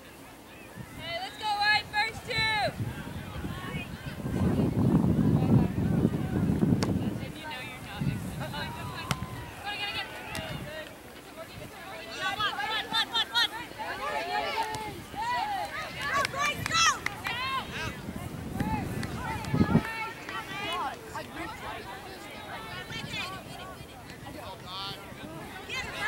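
Young women shout to each other outdoors across an open field.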